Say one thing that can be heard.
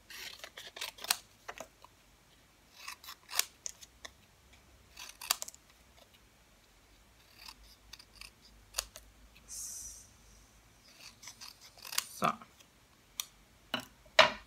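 Scissors snip through paper in short, crisp cuts.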